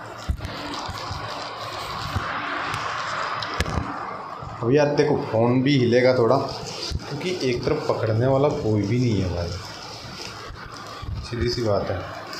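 Plastic wrapping crinkles as a hand pulls at it.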